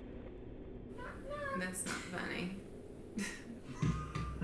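A young woman speaks softly close by.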